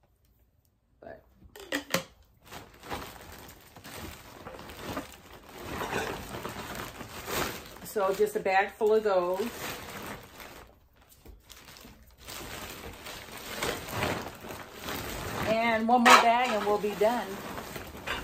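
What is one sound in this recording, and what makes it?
Plastic wrapping and paper bags rustle and crinkle.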